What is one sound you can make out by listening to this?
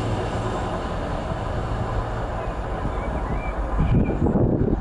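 A passenger train rushes past close by with a roar of wheels on the rails.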